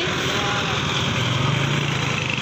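A forklift engine rumbles close by.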